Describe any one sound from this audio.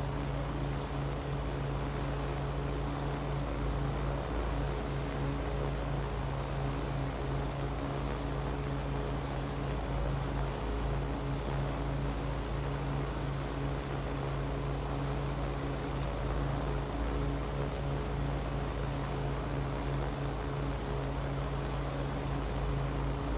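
A drone's rotors hum steadily and loudly.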